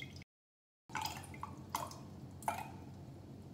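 A plastic bottle crinkles and clicks.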